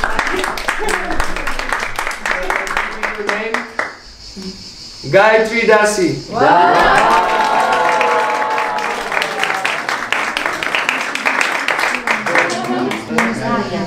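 A group of people clap their hands in a quick, even rhythm.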